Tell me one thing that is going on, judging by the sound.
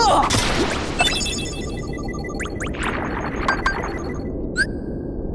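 A magic spell shimmers with a sparkling chime.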